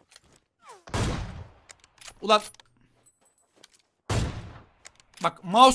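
A rifle fires loud, booming shots that echo and fade.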